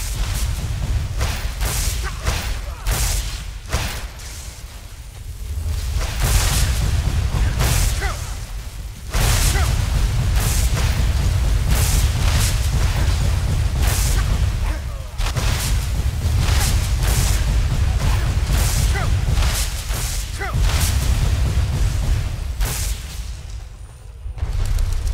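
Magic spells crackle and burst in rapid blasts.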